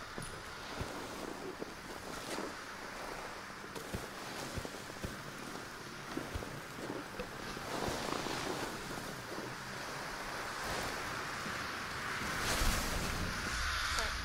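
A snowboard carves and hisses across snow.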